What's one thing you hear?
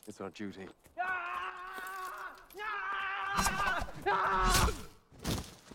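A man cries out loudly.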